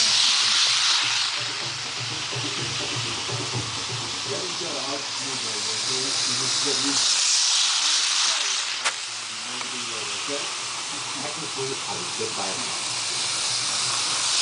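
A toy train rumbles and whirs along plastic tracks close by, growing loud as it passes.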